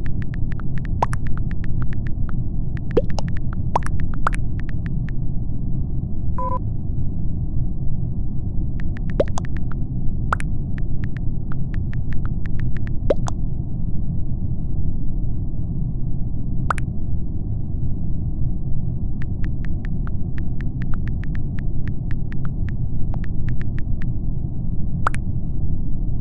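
Phone keyboard keys click in quick bursts.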